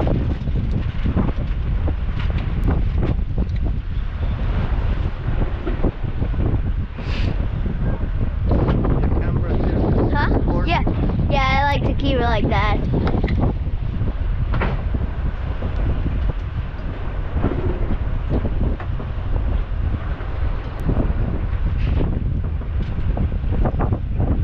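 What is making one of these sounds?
Rough waves slosh and splash against a boat's hull.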